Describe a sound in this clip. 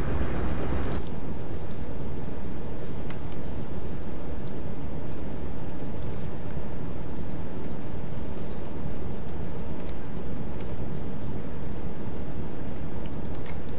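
Waves wash and roll at the sea surface.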